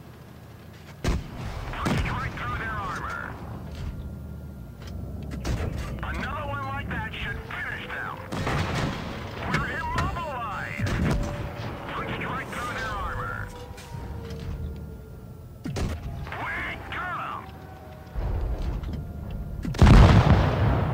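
A tank cannon fires with loud, sudden booms.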